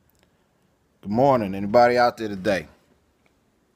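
A middle-aged man speaks briefly and slowly, close to the microphone.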